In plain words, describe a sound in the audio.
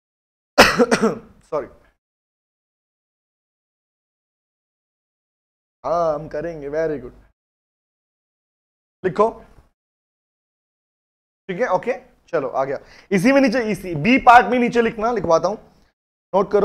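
A man speaks calmly and at a steady pace into a close microphone, with pauses between phrases.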